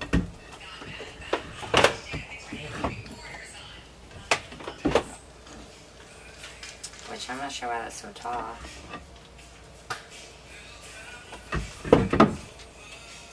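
Wooden panels knock and tap as they are fitted into place.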